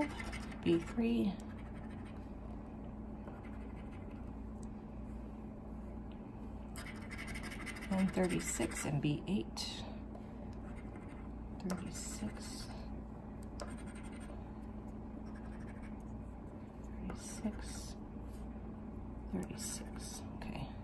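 A coin scratches across a card in short rasping strokes.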